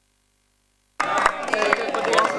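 A crowd claps hands in rhythm.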